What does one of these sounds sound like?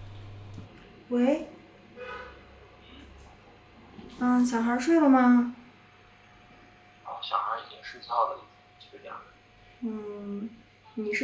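A young woman speaks softly into a phone close by.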